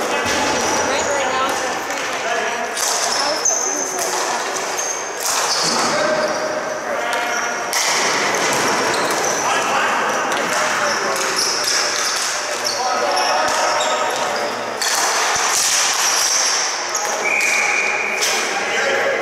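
Young players shout to one another in a large echoing hall.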